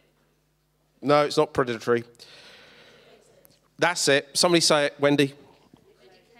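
A man speaks with animation through a microphone in a large echoing hall.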